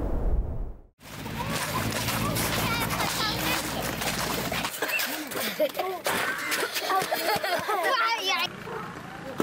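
Children shout and laugh excitedly outdoors.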